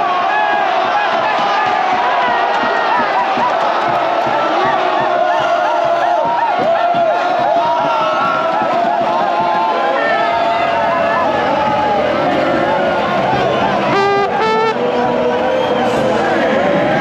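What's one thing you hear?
A trumpet plays a tune close by.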